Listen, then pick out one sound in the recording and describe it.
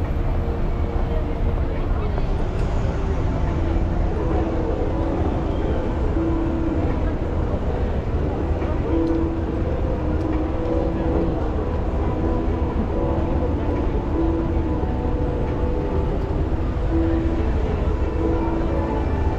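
Footsteps tap on paving stones as people walk past.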